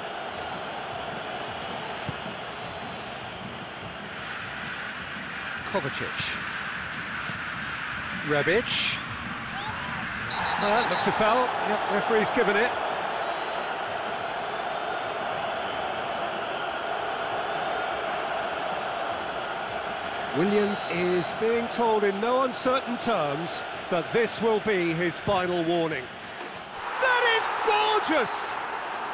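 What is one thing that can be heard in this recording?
A stadium crowd roars and chants.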